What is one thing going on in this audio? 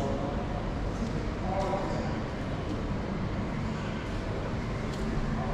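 Footsteps walk steadily across a hard tiled floor.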